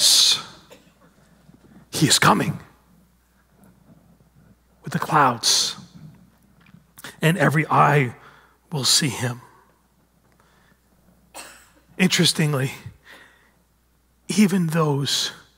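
A man speaks with animation through a headset microphone, in bursts with pauses.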